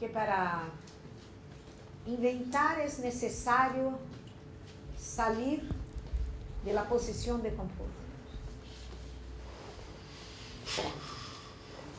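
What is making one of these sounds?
A woman speaks into a microphone at a distance, heard in a room with some echo.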